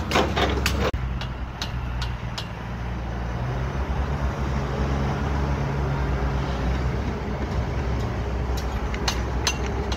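A diesel excavator engine rumbles.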